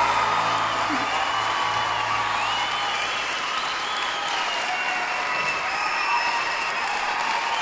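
Shrill whistles ring out from a crowd.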